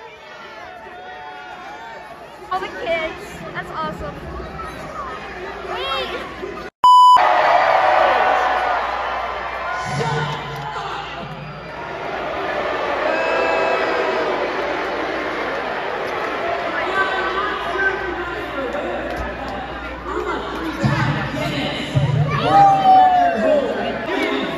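A large crowd cheers and shouts in a big echoing arena.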